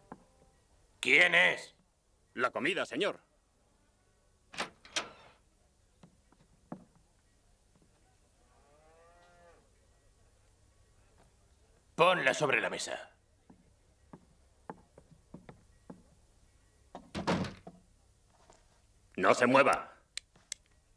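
A man speaks in short bursts.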